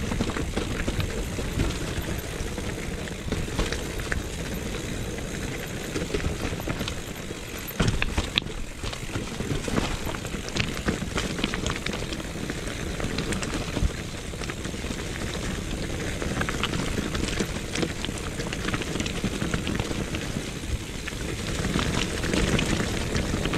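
Bicycle tyres crunch and rattle over a rough stony trail.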